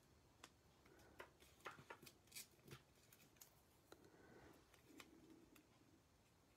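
A paper piece taps lightly on a card.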